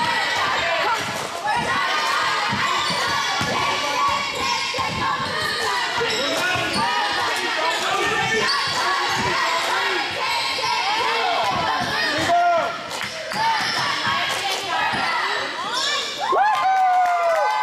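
Sneakers squeak sharply on a wooden gym floor.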